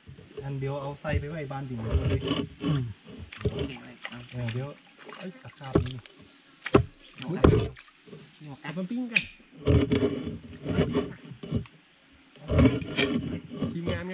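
A large knife chops against wood with sharp knocks.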